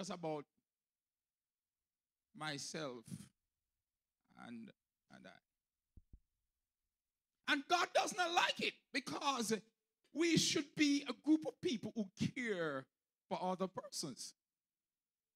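A man preaches with animation into a microphone, heard through loudspeakers.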